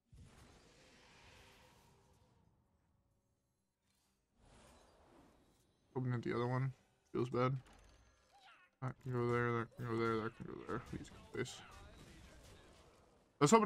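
Game sound effects whoosh and chime as cards are played.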